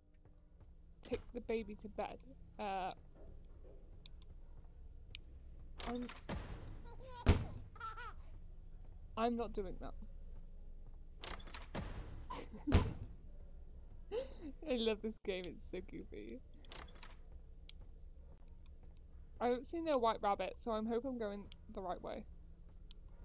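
A young woman talks with animation into a headset microphone, close by.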